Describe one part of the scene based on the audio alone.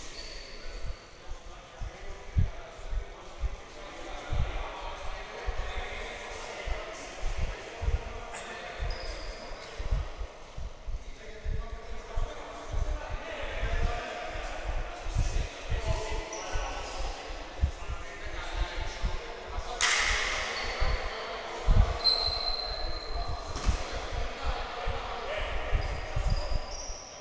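Men call out to each other across the hall.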